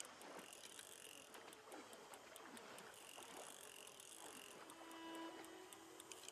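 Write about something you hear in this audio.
A hooked fish splashes in the water.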